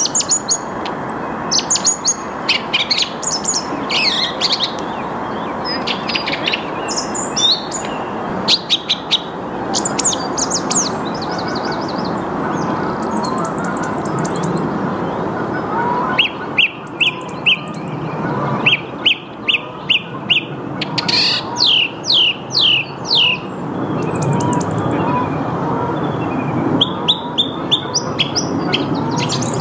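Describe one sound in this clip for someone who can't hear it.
A songbird sings loud, varied phrases of repeated notes close by.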